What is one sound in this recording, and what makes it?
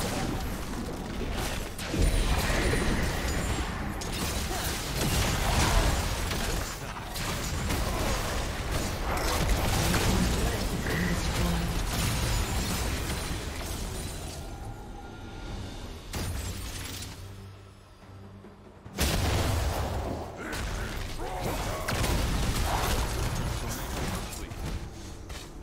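Spell effects whoosh and crackle in a fast game battle.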